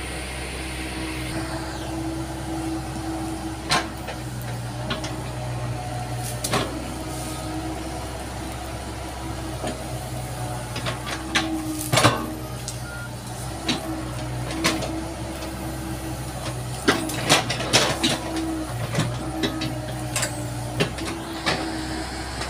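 An excavator bucket knocks and scrapes into soil.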